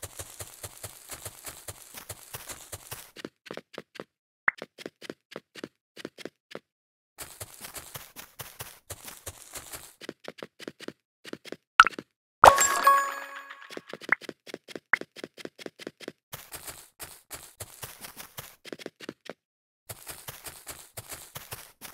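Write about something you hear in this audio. Blocks pop and click as a game character places them.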